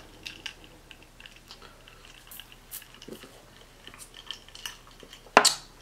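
A woman sips a drink through a straw.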